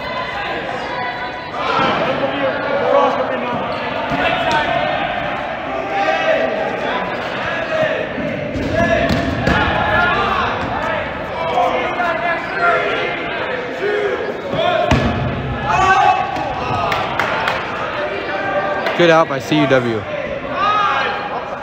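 Young men shout and call out across the hall.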